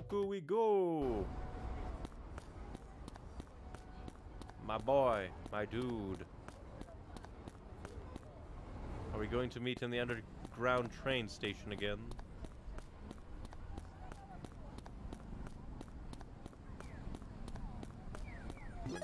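Quick footsteps patter steadily on pavement.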